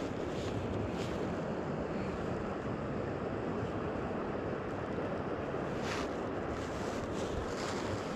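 Water trickles steadily in a shallow stream nearby.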